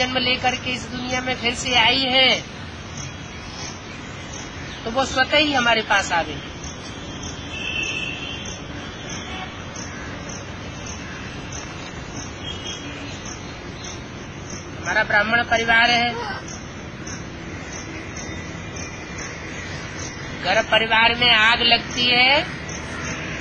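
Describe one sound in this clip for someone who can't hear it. An elderly man speaks close by in short bursts, with pauses between.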